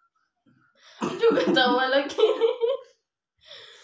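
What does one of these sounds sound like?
A young woman laughs loudly, close by.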